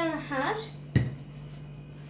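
A plastic cup is set down on a saucer with a sharp knock.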